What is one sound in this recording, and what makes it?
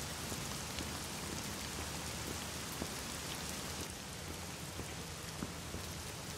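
Footsteps fall on a stone floor.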